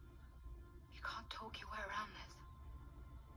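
A young woman speaks softly through a loudspeaker.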